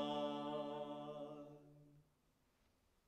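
A man sings a long held note that fades away.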